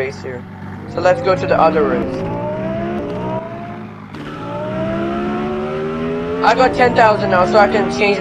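A car engine revs up repeatedly, rising in pitch as it speeds away.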